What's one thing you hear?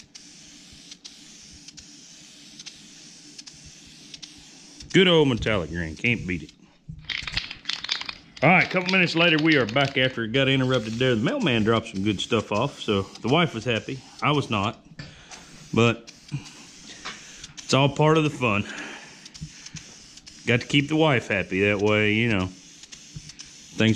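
An aerosol spray can hisses in short and long bursts.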